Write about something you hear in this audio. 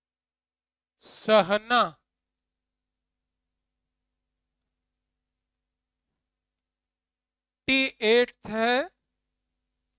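A young man speaks briefly and clearly, in two short phrases.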